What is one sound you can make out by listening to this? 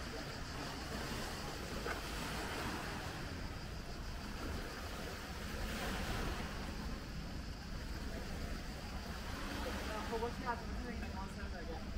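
Water laps gently against a rocky shore.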